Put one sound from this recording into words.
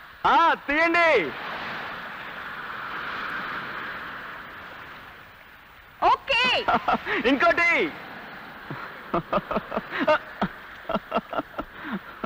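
Waves crash and wash onto a beach.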